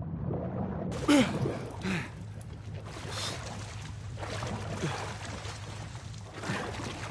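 Water splashes as a swimmer breaks the surface.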